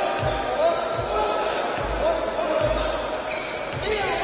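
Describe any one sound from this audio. A basketball bounces on a hard court with thuds.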